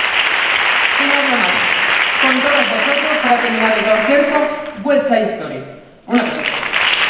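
A man speaks through a microphone to an audience.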